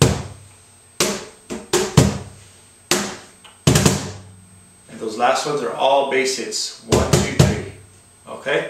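A box drum is struck with hands in sharp slaps and thumps.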